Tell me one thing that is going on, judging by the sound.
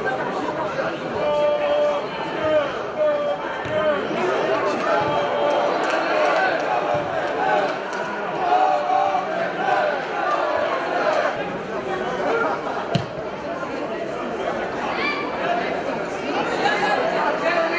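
Young men shout and call to each other across an open, echoing stadium.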